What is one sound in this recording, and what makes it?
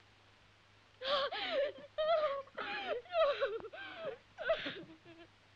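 A woman cries out and wails in distress.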